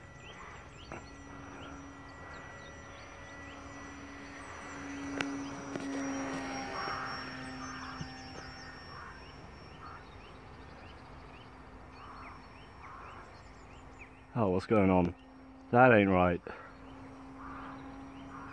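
A model plane's motor drones overhead.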